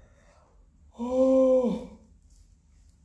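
A young woman lets out a long, drawn-out cry of dismay.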